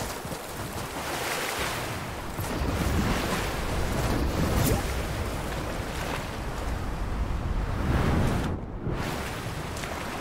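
A game character splashes while swimming through water.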